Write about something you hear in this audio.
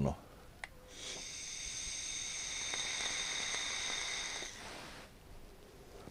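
An electronic vaporizer hisses steadily as a man draws on it.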